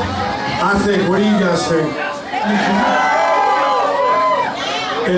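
An electric guitar plays.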